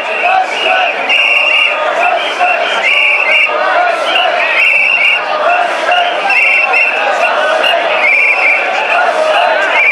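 A large crowd of men chants and shouts rhythmically in unison.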